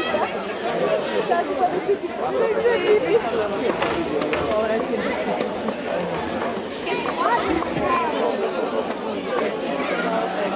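A group of older women sing together in harmony.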